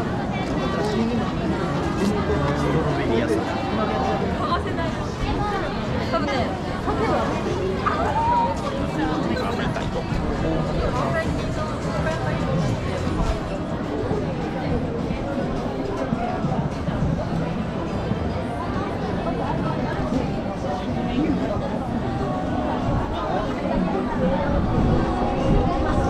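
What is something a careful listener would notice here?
A dense crowd of men and women chatters all around outdoors.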